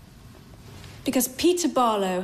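A woman speaks firmly and clearly.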